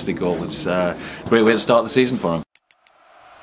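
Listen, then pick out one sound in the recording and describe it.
A middle-aged man speaks cheerfully, close to a microphone.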